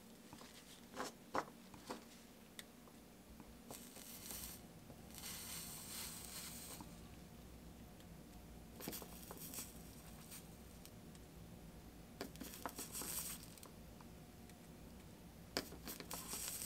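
Small clicks and taps sound as metal tools touch glass pieces.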